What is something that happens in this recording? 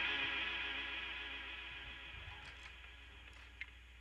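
A cymbal rings out and slowly fades away.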